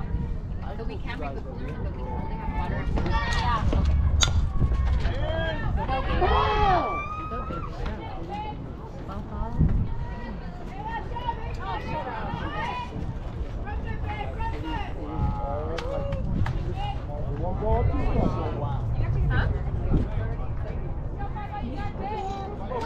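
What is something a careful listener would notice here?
Players shout and cheer outdoors.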